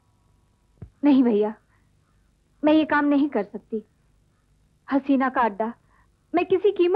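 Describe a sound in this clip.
A young woman speaks with distress, close by.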